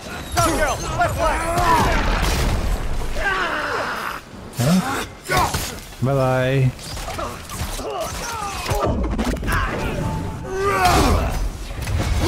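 Heavy weapon blows strike during a fight.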